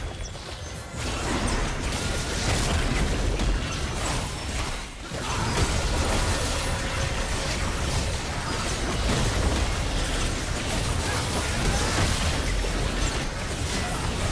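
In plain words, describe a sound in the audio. Rapid clashing blows and bursts ring out in a fight.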